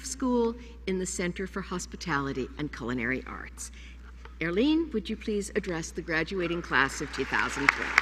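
An elderly woman speaks calmly into a microphone in a large hall.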